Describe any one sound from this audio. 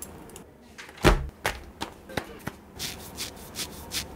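Hands rustle and tap a cardboard mailer up close.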